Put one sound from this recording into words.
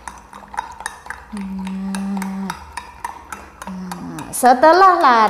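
A spoon clinks against a glass while stirring.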